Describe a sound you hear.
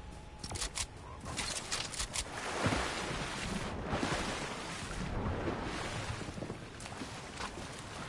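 Water splashes and sloshes as a game character swims.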